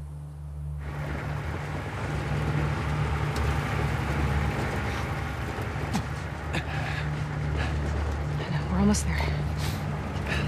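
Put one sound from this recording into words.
An open off-road truck's engine rumbles as it drives.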